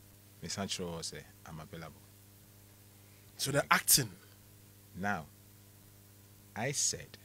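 A man speaks loudly and with animation, in short bursts.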